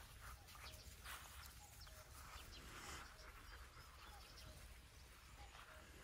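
Dogs' paws patter softly across grass.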